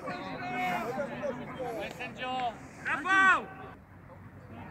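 Young players shout loudly to each other outdoors at a distance.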